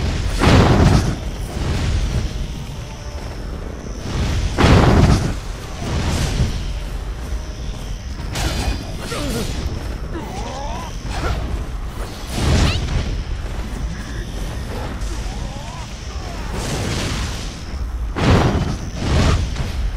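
Fiery blasts burst and roar.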